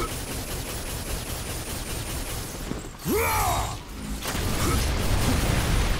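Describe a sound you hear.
Flames burst and roar loudly.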